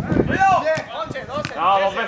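A football thuds as a player kicks it.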